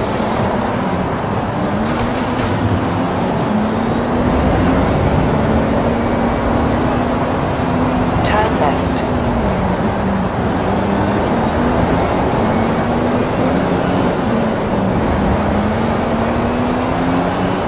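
Tyres rush over a road at high speed.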